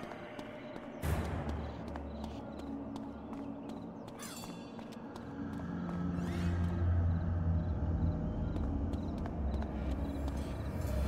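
Quick footsteps tap on stone paving.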